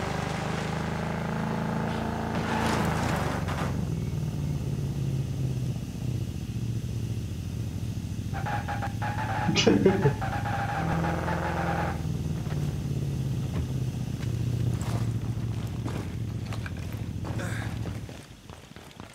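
A vehicle engine drones.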